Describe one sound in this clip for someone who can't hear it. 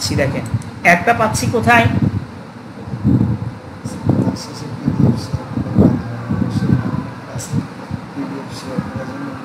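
A man speaks steadily into a microphone, explaining calmly.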